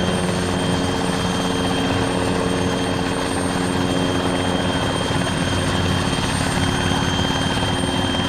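A helicopter's engine whines steadily.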